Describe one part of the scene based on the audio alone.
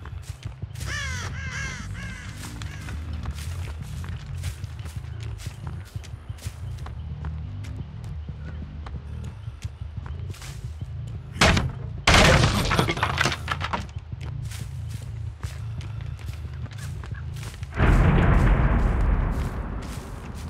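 Heavy footsteps thud steadily across the ground.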